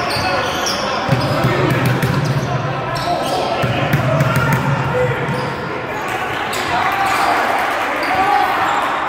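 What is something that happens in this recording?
Young men shout and talk loudly in an echoing hall.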